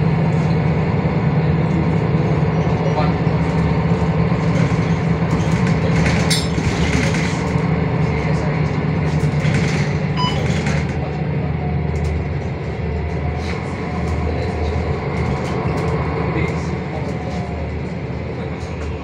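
A bus engine hums steadily while the bus drives along.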